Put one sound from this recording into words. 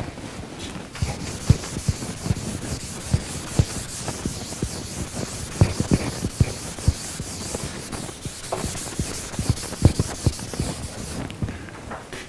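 A sponge wipes across a chalkboard.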